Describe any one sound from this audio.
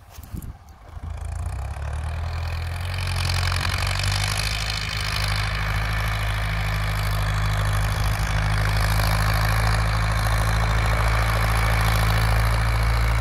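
A tractor engine rumbles steadily in the distance and grows louder as it comes closer.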